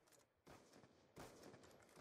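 A rifle fires a shot.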